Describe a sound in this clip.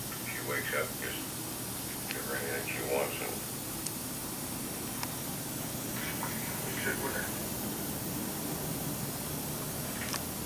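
A cat paws and bats at a dangling string, with soft knocks against books.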